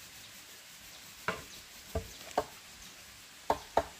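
A blade taps sharply on bamboo.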